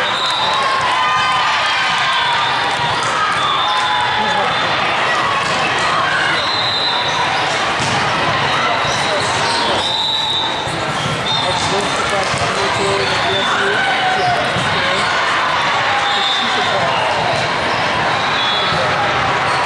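A crowd of voices chatters and echoes in a large hall.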